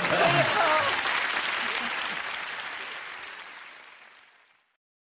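A large crowd applauds and cheers in a big hall, then fades away.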